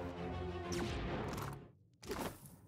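A magical spell whooshes and crackles.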